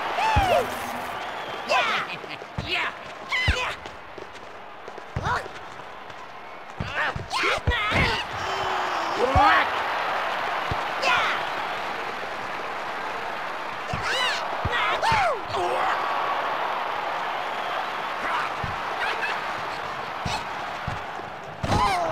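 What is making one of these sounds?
A ball is kicked with sharp thuds, again and again.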